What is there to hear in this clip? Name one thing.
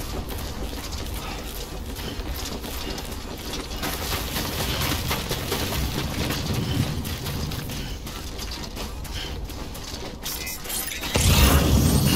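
Boots crunch on loose rocky ground with each step.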